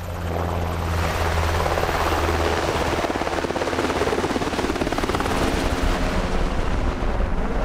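A helicopter roars overhead with thudding rotor blades.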